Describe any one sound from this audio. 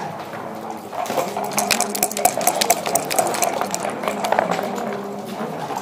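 Dice rattle in a cup and tumble onto a wooden board.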